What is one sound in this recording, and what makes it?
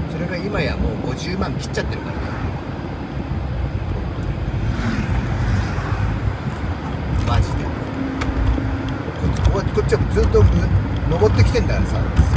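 A man talks casually close by.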